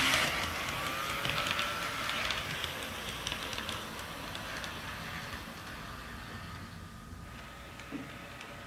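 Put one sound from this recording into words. A model train's motor hums as it rolls along the track.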